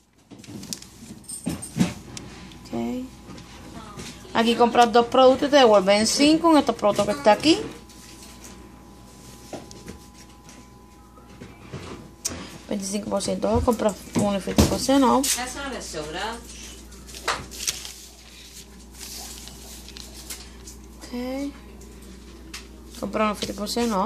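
Paper rustles and crinkles as a flyer is handled.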